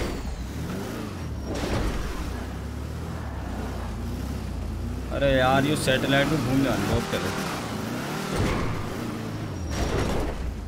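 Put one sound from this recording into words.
A car engine revs steadily.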